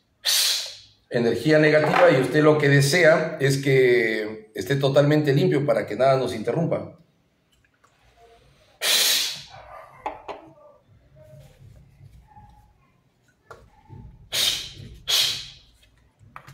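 A man blows out sharply with short hissing puffs.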